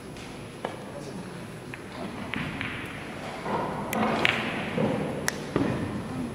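Billiard balls click against each other and the cushions.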